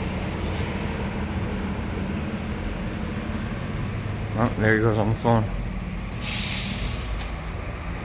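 A car engine idles with a low, echoing hum.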